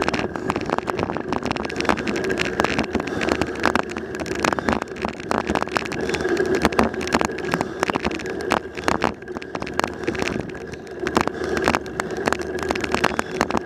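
Tyres roll steadily over asphalt.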